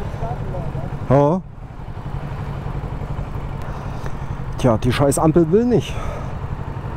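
A motorcycle engine revs briefly, rising and falling in pitch.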